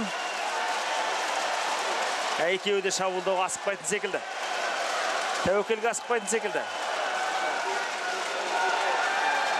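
A large crowd murmurs and cheers in a big echoing arena.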